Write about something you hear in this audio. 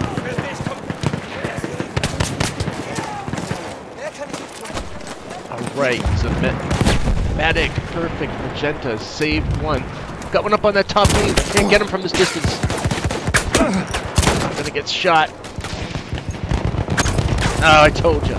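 Guns fire in rapid, sharp shots.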